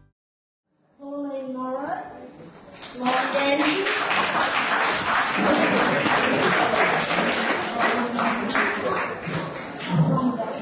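An elderly woman speaks clearly into a microphone in an echoing hall.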